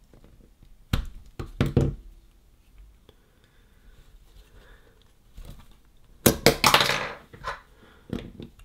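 Small plastic parts click and knock as they are handled.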